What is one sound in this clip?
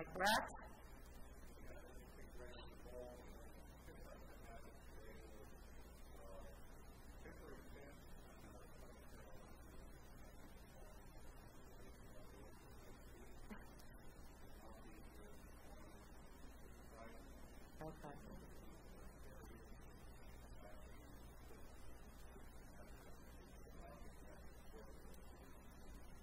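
A man speaks calmly at a distance in a room, heard faintly through a microphone.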